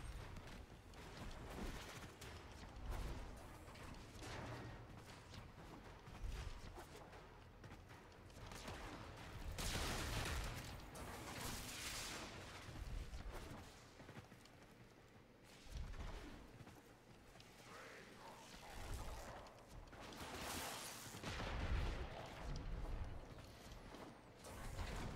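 Game sound effects whoosh and thud as a character leaps and dashes.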